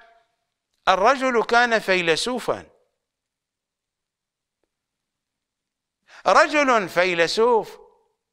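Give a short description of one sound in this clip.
A middle-aged man speaks with animation into a microphone, pausing between phrases.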